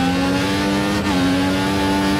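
A racing car engine briefly dips as it shifts gear.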